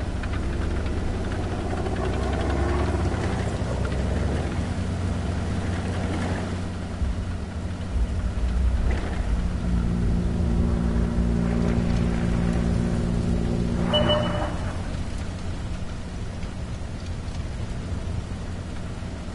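A tank's tracks clatter and squeak over rough ground.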